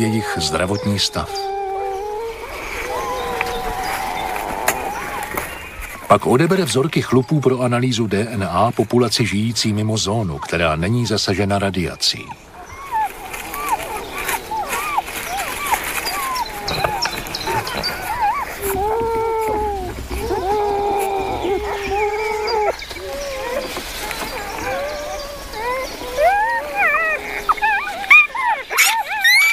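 Newborn pups whimper and squeal in high, wavering cries.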